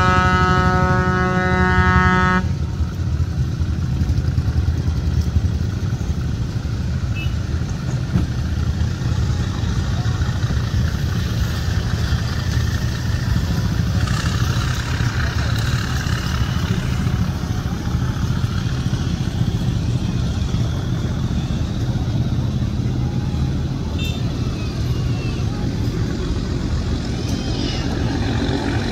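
A boat's engine rumbles steadily across the water.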